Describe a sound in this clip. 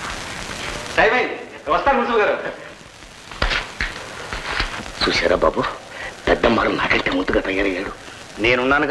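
An elderly man speaks sternly to another man.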